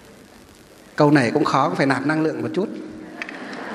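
A man chants in a steady, drawn-out voice through a microphone.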